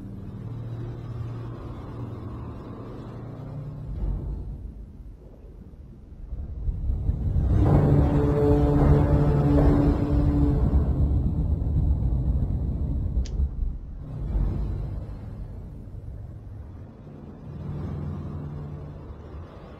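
A large turbine fan whirs with a low hum.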